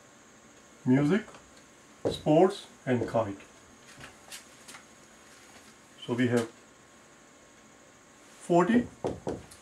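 A middle-aged man speaks in short, calm bursts like a teacher explaining.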